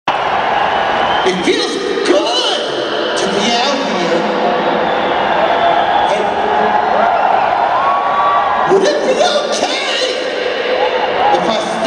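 A man sings loudly into a microphone, heard through a loudspeaker system.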